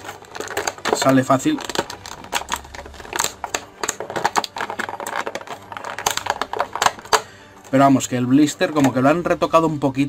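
Plastic packaging crinkles and crackles as hands handle it.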